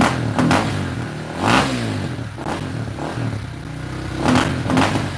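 A dirt bike engine idles with a rough, throbbing rumble.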